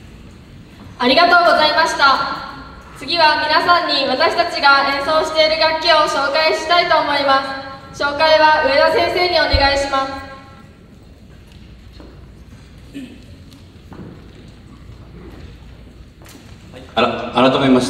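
A wind band plays bold brassy phrases in an echoing hall, in loud bursts with pauses between.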